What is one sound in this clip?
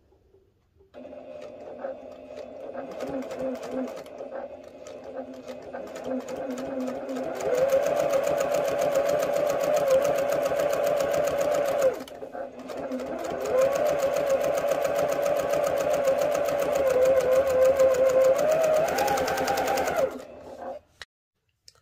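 A sewing machine hums and whirs as it stitches fabric, speeding up and slowing down.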